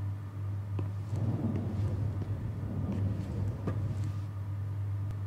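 A heavy metal drawer rolls out with a rumble.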